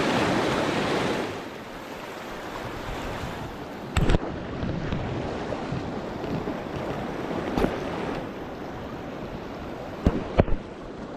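A river rushes over rapids close by.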